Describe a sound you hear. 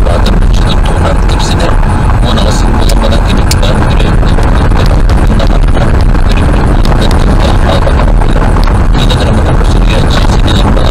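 Tyres rumble and crunch on a gravel road.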